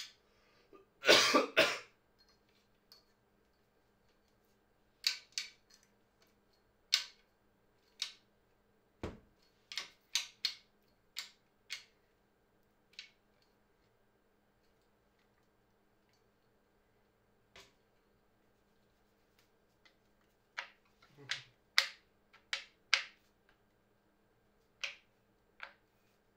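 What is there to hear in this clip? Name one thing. Tripod legs click and clack sharply as they are adjusted by hand.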